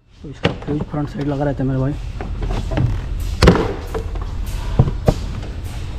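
A plastic cover clatters and knocks as hands handle it.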